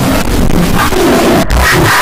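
A man shouts loudly, heavily distorted.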